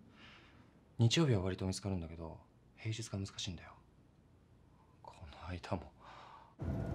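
A young man speaks quietly and tensely.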